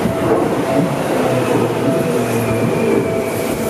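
Train wheels squeal on a curve.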